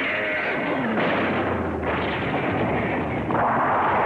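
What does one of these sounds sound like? A bridge cracks and breaks apart.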